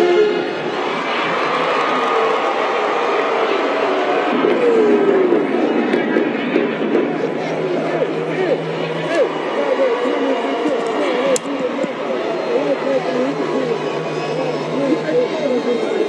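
A crowd cheers and shouts in the stands.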